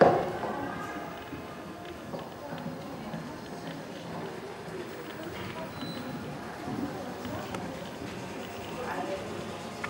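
Horse hooves thud on soft sand in a large echoing indoor arena.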